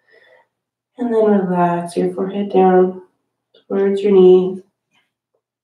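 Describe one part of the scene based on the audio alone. A woman speaks calmly and softly into a microphone.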